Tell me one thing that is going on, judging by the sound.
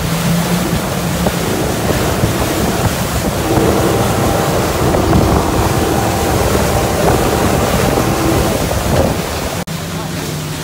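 An outboard motor roars loudly at speed.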